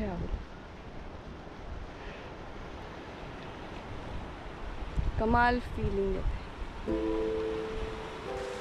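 Wind blusters outdoors.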